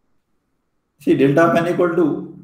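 A young man speaks calmly through an online call.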